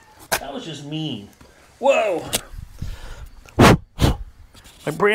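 Knocks and clunks sound as a man handles metal parts.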